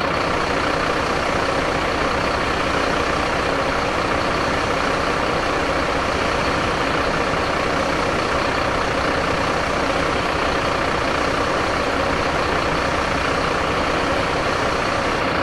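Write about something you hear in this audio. A fire hose sprays water against a wall.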